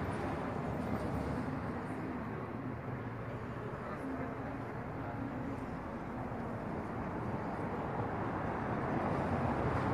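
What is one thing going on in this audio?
A woman talks on a phone nearby.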